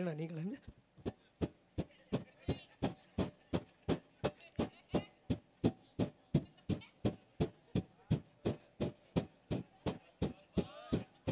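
Hands clap in a steady, quick rhythm.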